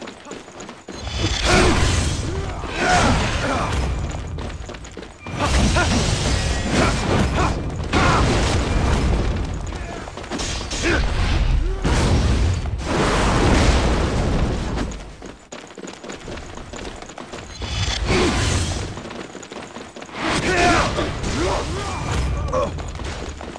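Blades clash and magic bursts crackle in a fast fight.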